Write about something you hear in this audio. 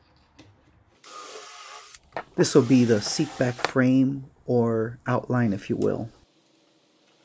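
A cordless drill bores pocket holes in wood.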